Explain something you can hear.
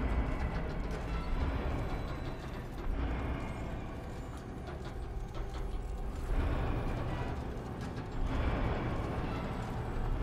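Heavy gears grind and clank as machinery turns.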